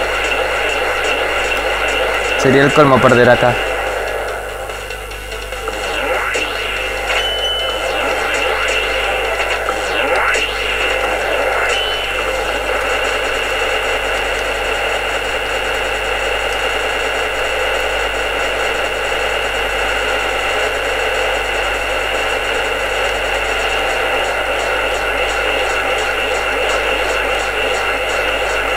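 Energy beams blast in loud roaring bursts.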